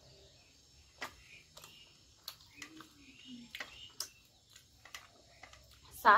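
A young woman chews food with wet mouth sounds close to the microphone.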